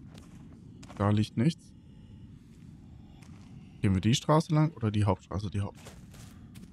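A young man talks animatedly into a microphone, close by.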